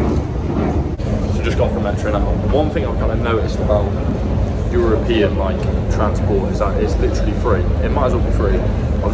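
A young man talks to the microphone close up.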